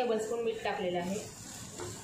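A spoon scrapes against a frying pan.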